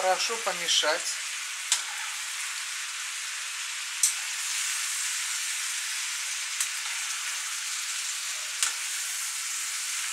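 A spatula scrapes and clinks against a frying pan.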